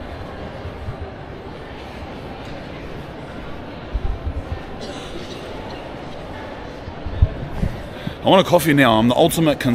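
A low murmur of a large echoing hall hums in the background.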